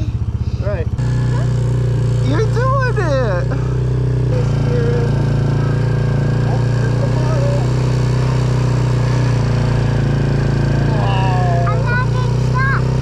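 A small engine revs up and drones steadily.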